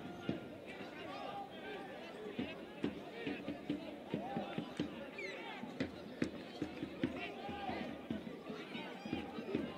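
A crowd of spectators shouts and chatters nearby outdoors.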